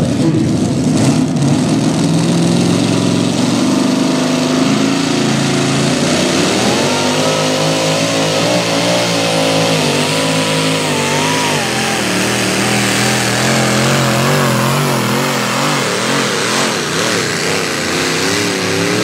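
A tractor engine roars loudly throughout and rises in pitch.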